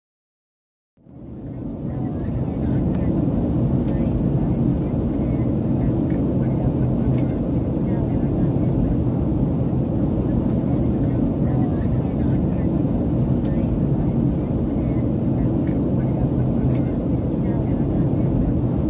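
A jet engine roars steadily from inside an aircraft cabin.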